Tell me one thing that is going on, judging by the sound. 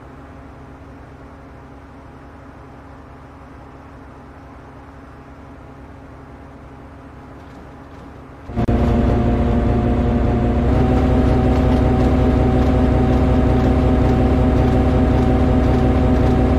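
A train rumbles steadily along the tracks, muffled at first and then suddenly much louder.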